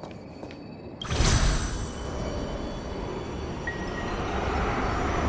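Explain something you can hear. A magical whoosh bursts out loudly and rushes on.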